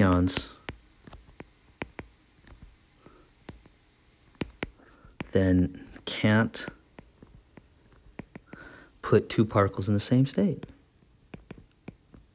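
A stylus taps and scratches on a tablet's glass.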